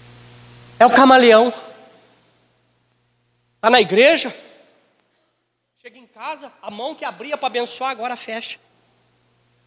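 A man speaks with passion through a microphone in an echoing hall.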